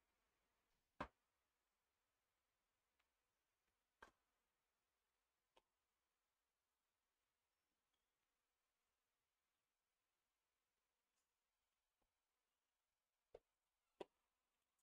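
A tennis ball bounces on a hard court a few times.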